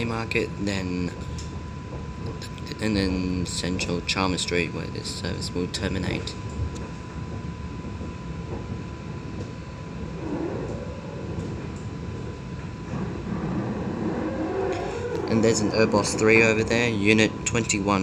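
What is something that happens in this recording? A tram rumbles steadily along its tracks.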